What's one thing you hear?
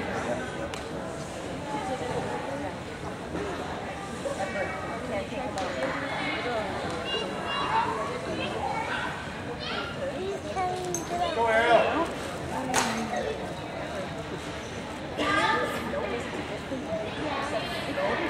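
The uneven bars creak and rattle as a gymnast swings on them.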